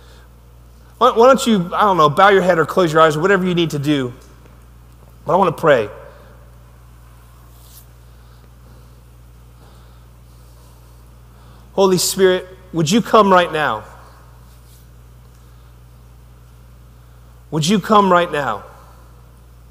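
A man speaks with animation into a microphone, pausing between phrases, in a large echoing hall.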